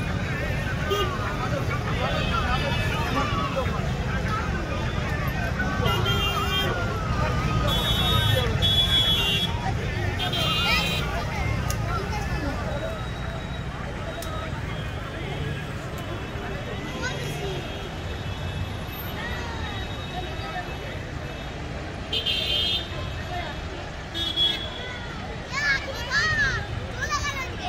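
A crowd of people chatters and calls out outdoors nearby.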